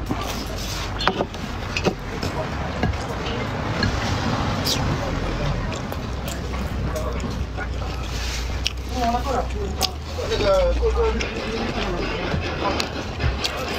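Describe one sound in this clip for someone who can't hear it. Chopsticks clink against a ceramic bowl.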